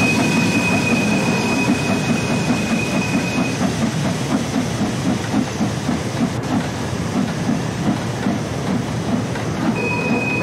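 A steam locomotive chugs steadily.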